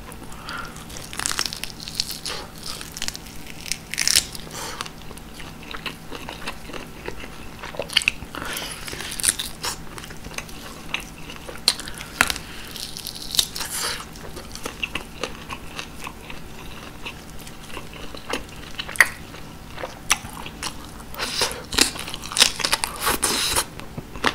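Wet, sticky chewing and smacking sounds come close up.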